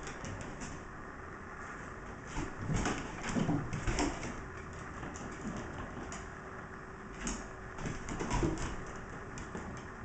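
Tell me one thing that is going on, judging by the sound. Dog paws patter on a wooden floor.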